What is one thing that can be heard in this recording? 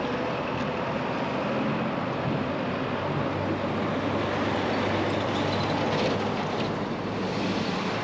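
A truck passes close by with a deep engine roar.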